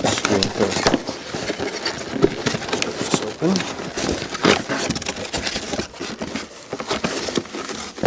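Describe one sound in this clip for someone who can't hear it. Cardboard rustles and scrapes close by.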